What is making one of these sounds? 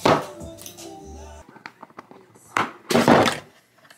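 A plastic lid crackles and pops as a hand presses on it.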